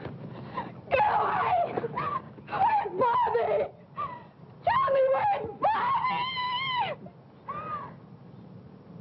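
A woman screams and cries out in distress.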